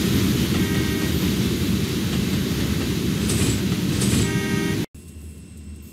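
A train rumbles loudly as it approaches.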